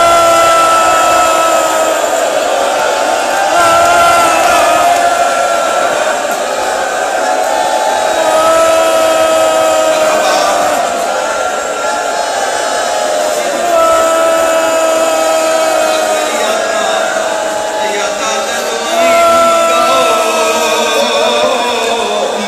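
A crowd of men beats their chests in a steady rhythm.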